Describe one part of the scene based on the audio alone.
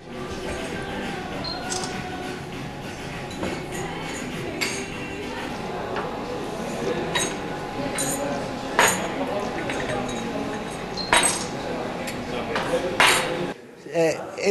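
Glasses clink on a tray.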